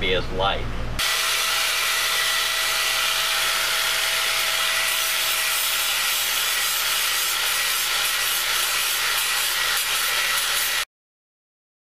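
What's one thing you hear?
An angle grinder whines loudly as it grinds.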